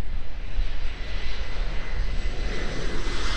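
A jet plane roars overhead, growing louder.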